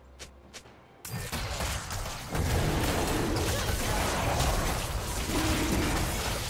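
Magic spells crackle and explode in a fast fight.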